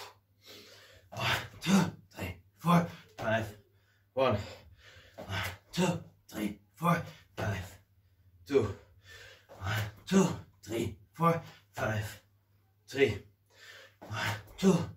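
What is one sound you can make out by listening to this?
A man breathes hard and puffs with effort.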